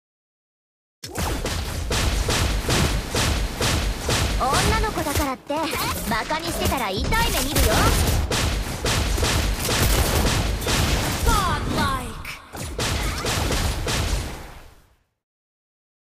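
Fast video game combat effects crash and zap in quick bursts.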